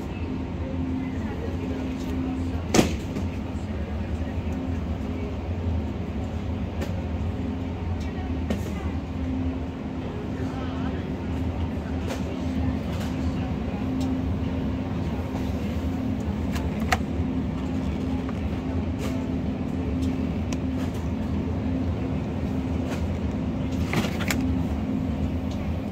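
A refrigerated display case hums steadily.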